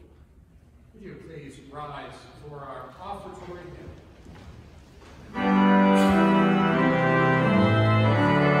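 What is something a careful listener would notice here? A choir sings together in a large echoing hall.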